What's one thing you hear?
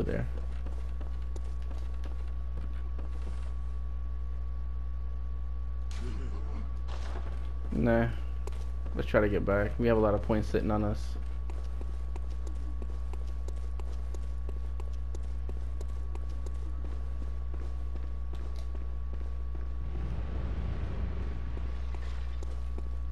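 Footsteps thud on wooden stairs and stone.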